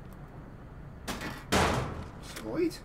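A metal hatchet strikes a metal panel with a loud clang.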